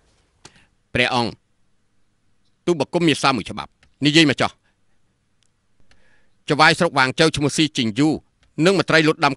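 A man speaks formally and clearly, close by.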